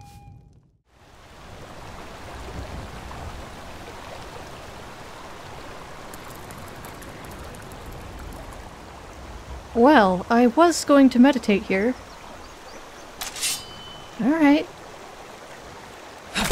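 A waterfall and stream rush steadily nearby.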